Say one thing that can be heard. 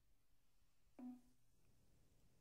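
A computer error chime sounds once.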